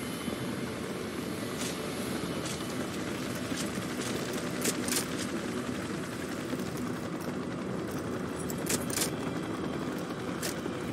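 Boots run and thud on hard ground.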